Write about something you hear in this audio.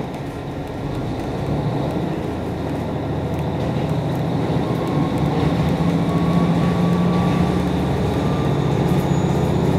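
A train rumbles steadily along the tracks, growing slightly louder.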